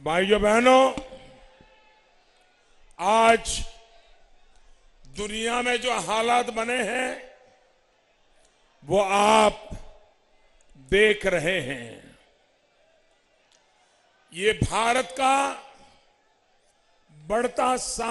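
An elderly man speaks forcefully into a microphone over loudspeakers, in short bursts with pauses.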